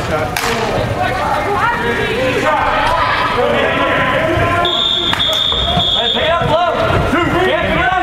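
Young players shout to each other across a large echoing indoor hall.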